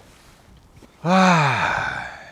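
A man lets out a loud, drawn-out exclamation that falls in pitch and fades.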